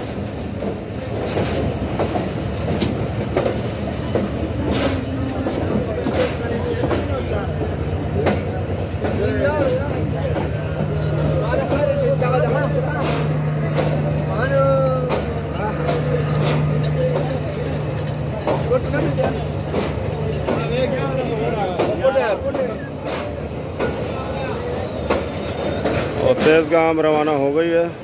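Men in a crowd chatter and call out nearby.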